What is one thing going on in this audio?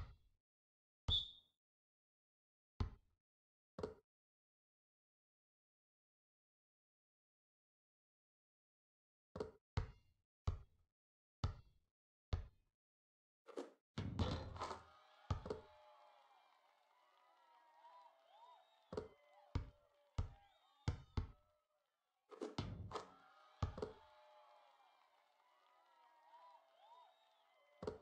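A basketball bounces on a hard court with sharp thuds.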